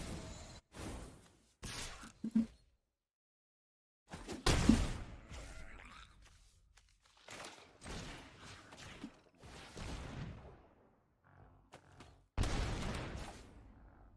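A man talks with animation into a headset microphone.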